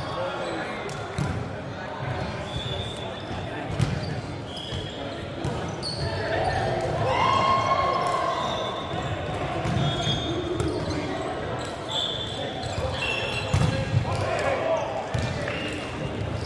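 Several young men call out and chatter in a large echoing hall.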